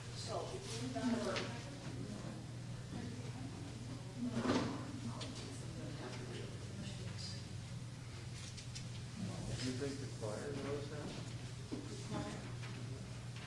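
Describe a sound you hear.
Several adults chat quietly at a distance in a large echoing hall.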